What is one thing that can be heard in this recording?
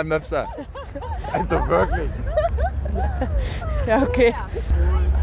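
A young woman talks cheerfully and close to a microphone.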